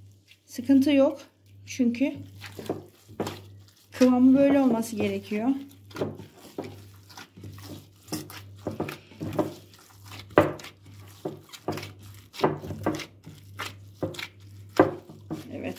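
Gloved hands knead soft, sticky dough, squishing and slapping.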